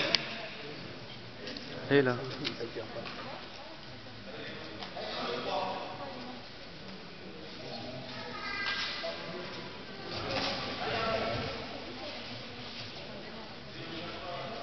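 Spectators talk and murmur in a large echoing hall.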